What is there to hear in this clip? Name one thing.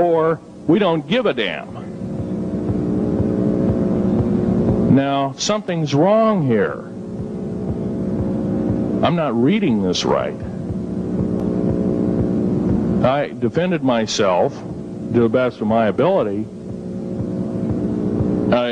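A man speaks into a microphone in bursts, heard through a loudspeaker.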